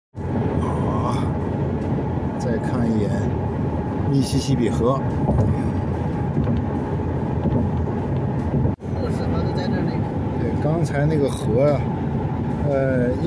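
Tyres roll steadily over a road as a car drives along.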